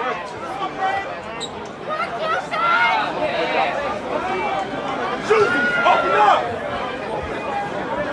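Young men chant together in unison.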